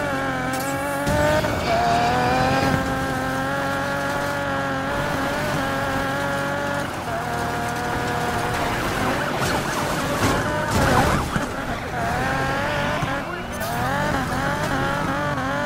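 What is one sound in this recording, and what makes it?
A car engine roars at high revs, rising and falling as gears shift.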